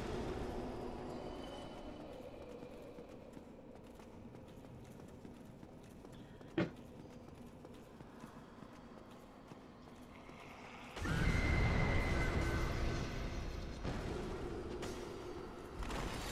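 Armoured footsteps clank quickly on a stone floor.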